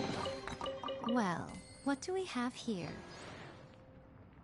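Sparkling chimes twinkle and rise in pitch.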